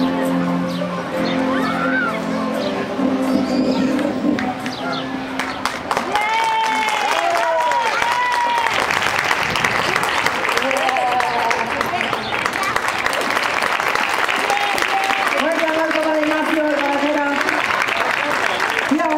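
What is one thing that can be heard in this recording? An audience of children and adults murmurs and cheers outdoors.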